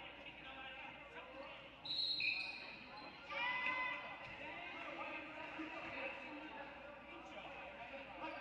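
A crowd of spectators chatters and calls out in an echoing gym.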